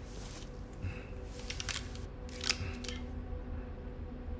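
A pistol clicks as it is handled and loaded.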